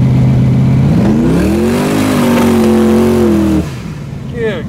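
A car engine revs up and then settles back down.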